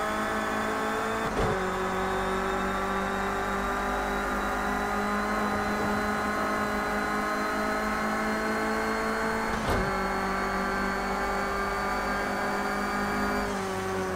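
A racing car engine roars steadily, slowly climbing in pitch as the car speeds up.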